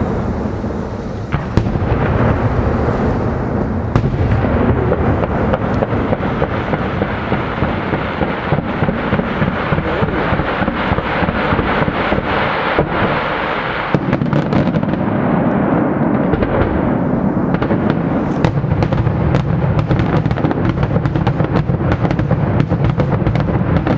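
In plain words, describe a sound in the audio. Fireworks crackle and bang rapidly far off.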